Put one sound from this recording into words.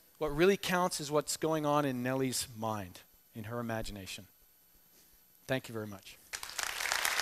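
A middle-aged man speaks calmly through a microphone in a large hall.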